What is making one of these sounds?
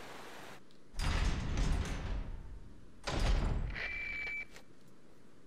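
A heavy metal gate creaks and swings open.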